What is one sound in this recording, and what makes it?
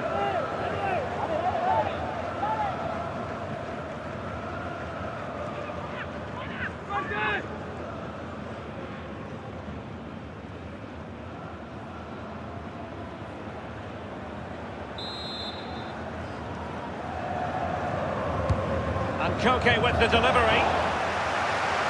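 A large stadium crowd chants and sings loudly.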